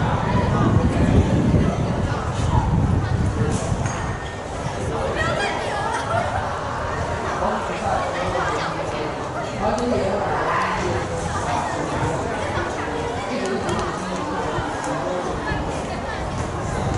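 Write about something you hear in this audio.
A crowd of young people chatters outdoors at a distance.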